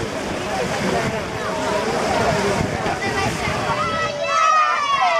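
Swimmers splash and churn the water nearby.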